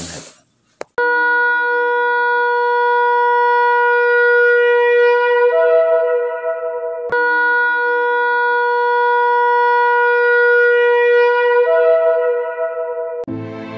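A ram's horn blows long, loud, steady blasts that shift in pitch.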